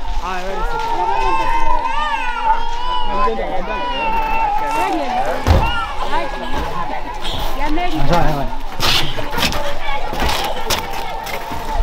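A crowd of children chatters and calls out nearby outdoors.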